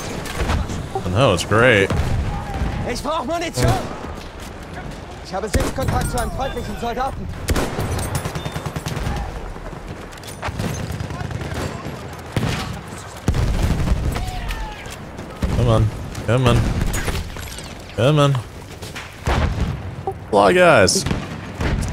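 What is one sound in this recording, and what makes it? Rifle shots crack at intervals.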